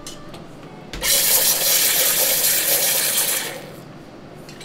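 An espresso machine hisses loudly with steam.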